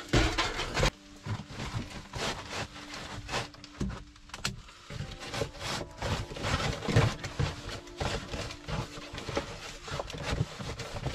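Foil crinkles and rustles in hands.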